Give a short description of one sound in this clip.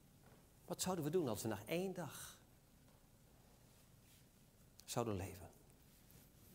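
A man speaks with emphasis into a microphone in a reverberant hall, pausing between phrases.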